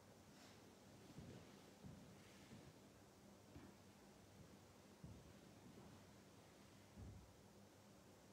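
Objects knock softly as they are set down on a table.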